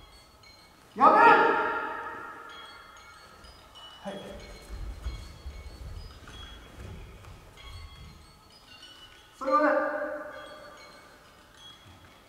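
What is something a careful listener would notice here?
A man lets out loud, drawn-out shouts that echo through a large hall.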